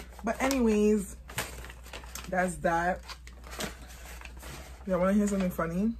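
Paper wrapping crinkles and rustles.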